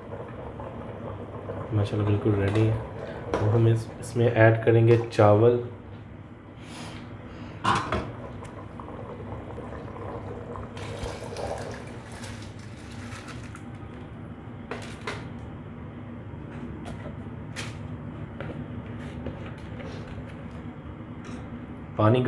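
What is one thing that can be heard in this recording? Water bubbles at a rolling boil in a pot.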